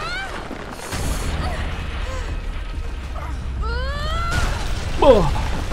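Stones crash and tumble down with a deep rumble.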